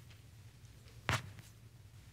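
A man coughs once into his hand.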